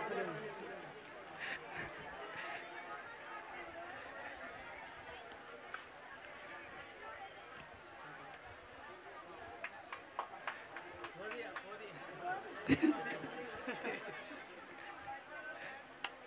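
A crowd of adults murmurs and chatters nearby.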